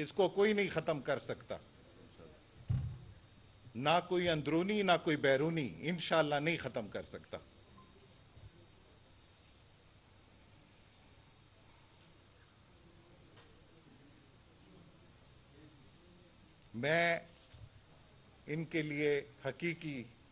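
A middle-aged man speaks into microphones with animation, in bursts separated by pauses.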